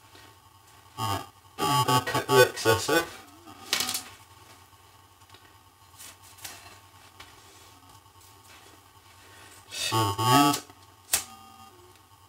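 A cord rubs and squeaks as it is pulled and tied tight.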